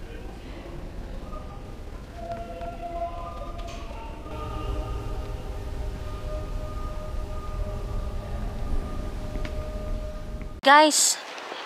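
A pipe organ plays slow, held notes in a large echoing hall.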